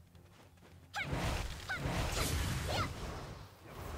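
Swooshing blows whip through the air.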